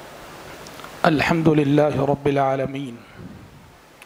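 A man speaks into a microphone in a slow, chanting voice.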